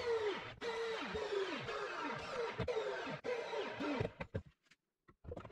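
A motor spins a belt-driven pulley with a whirring hum that winds down.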